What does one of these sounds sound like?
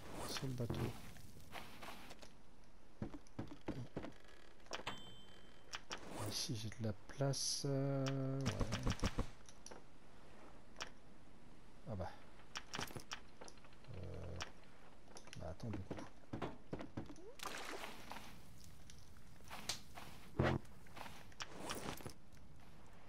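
Small waves lap on a sandy shore.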